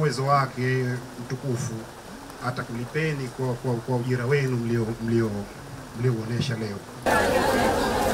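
A man speaks loudly and steadily into a microphone.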